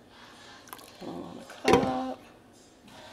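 A glass pot lid clatters as it is lifted and set back down.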